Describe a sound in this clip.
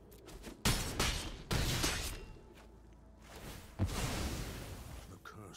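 Magical game sound effects whoosh in sudden bursts.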